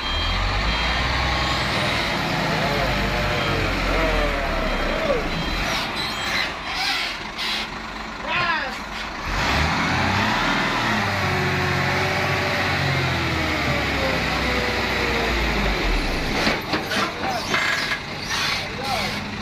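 A heavy truck's diesel engine rumbles and strains at low speed.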